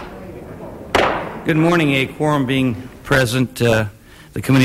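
An elderly man speaks clearly through a microphone.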